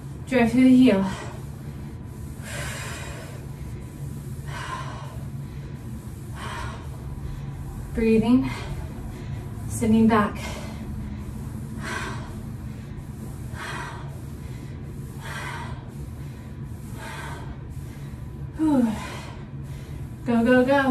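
A woman speaks out in short bursts, close by.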